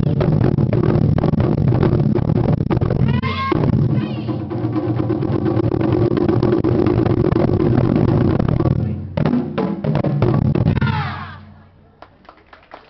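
Several large drums boom loudly in a fast, driving rhythm.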